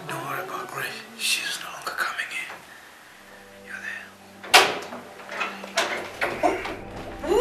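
A young woman sighs and moans softly close by.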